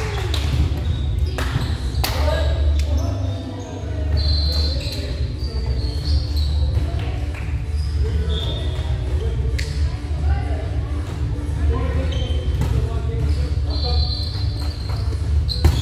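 A volleyball is struck repeatedly, thudding and echoing in a large hall.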